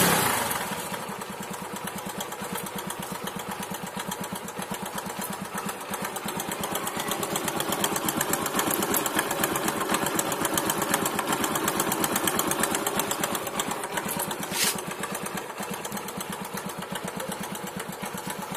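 A motorcycle engine idles close by with a steady, rapid chugging.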